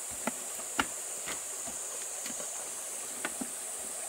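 A wheelbarrow rattles as it is pushed.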